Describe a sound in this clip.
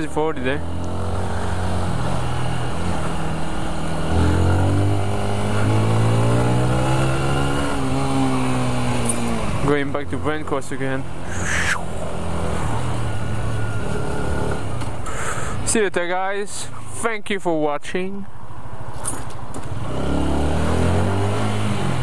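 A motorcycle engine hums and revs as the bike rides along.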